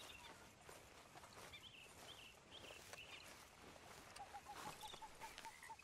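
A man's footsteps crunch softly on grass.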